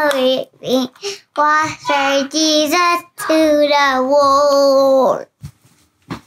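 A young child talks in a high voice close by.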